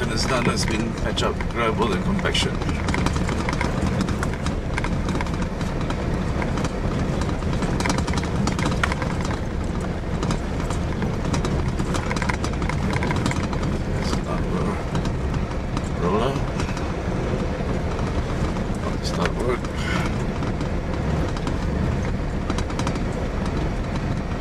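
Tyres rumble over a rough gravel road as a vehicle drives along.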